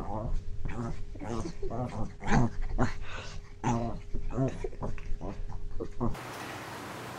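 Two cats swat and scuffle with their paws.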